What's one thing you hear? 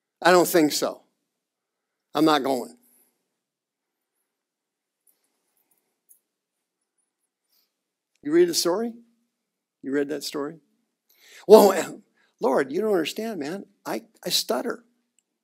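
A middle-aged man speaks to an audience through a microphone, in short bursts with pauses.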